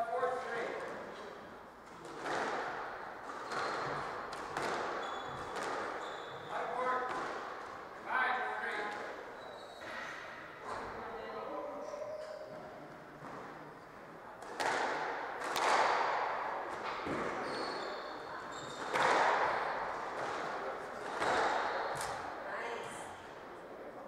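A squash ball smacks against the walls, echoing in a hard-walled court.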